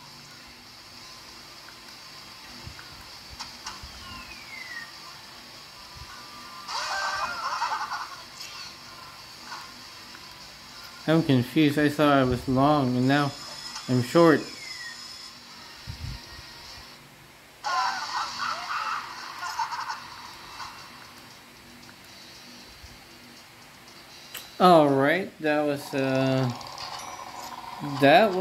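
Electronic game sounds play from a small handheld speaker.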